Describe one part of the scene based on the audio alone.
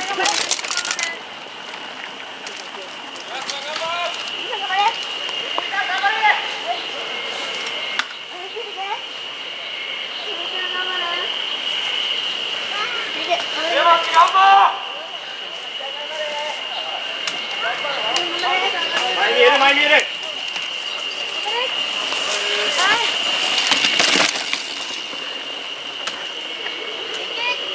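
Bicycle tyres roll over a dirt trail.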